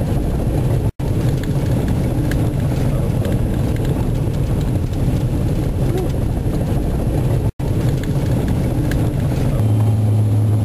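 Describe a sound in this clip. Tracked vehicles rumble slowly past in the snow.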